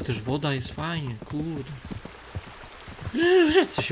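Horse hooves knock on wooden planks.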